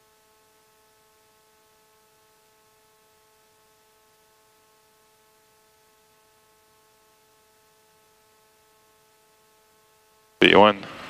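Aircraft engines whine steadily and faintly.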